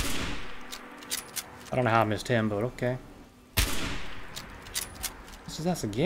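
A rifle bolt clicks as it is worked.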